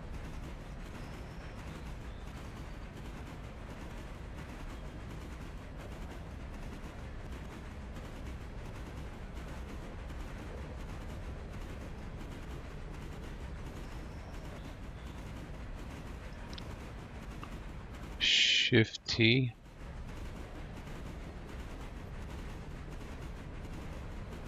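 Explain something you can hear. A steam train rumbles steadily along the rails.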